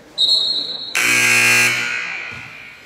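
A loud scoreboard buzzer blares briefly.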